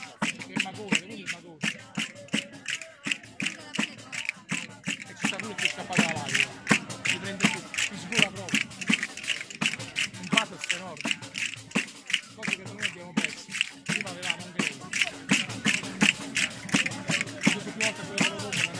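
Castanets click in a fast, steady rhythm close by.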